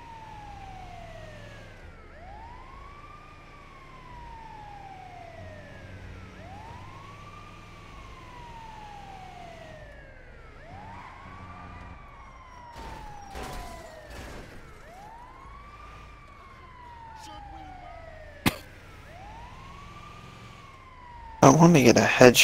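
An ambulance siren wails, rising and falling in slow sweeps.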